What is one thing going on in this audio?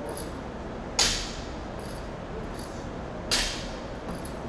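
Metal weight plates clank sharply as a barbell is lifted in an echoing hall.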